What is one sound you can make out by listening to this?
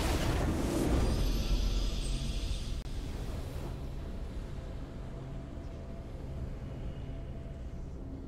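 A short triumphant fanfare plays and fades.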